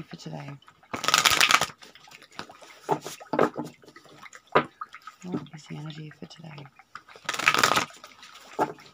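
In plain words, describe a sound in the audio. Playing cards riffle and shuffle close by.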